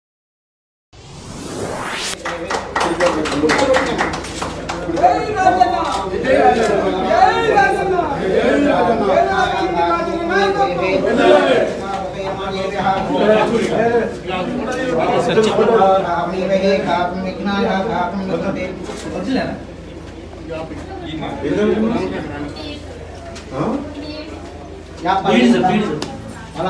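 A crowd of men and women talk and chatter close by.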